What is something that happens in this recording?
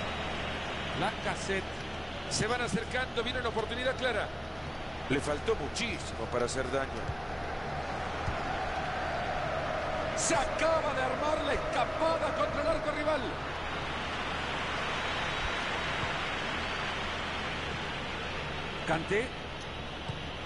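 A young man talks casually into a headset microphone.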